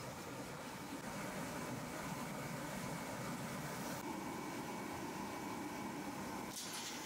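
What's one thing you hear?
A furnace roars steadily.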